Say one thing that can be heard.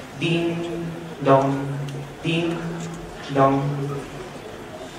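A young man speaks calmly through a microphone in a large hall.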